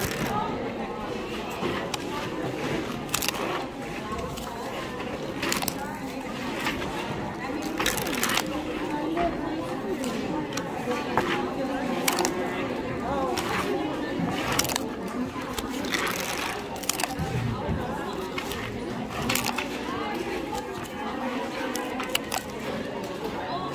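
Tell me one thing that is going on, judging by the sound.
Paper tickets rustle and snap as they are torn open by hand.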